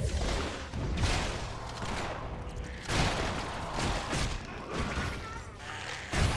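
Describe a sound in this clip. Spell impacts thud and burst.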